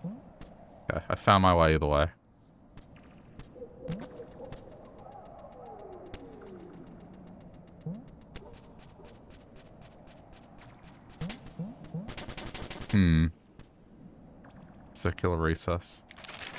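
Electronic game sound effects chirp in short bursts.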